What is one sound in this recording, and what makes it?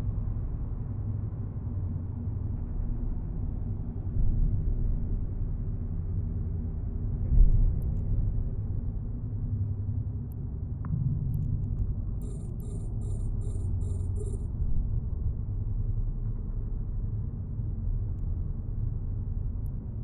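A low engine hum rumbles steadily.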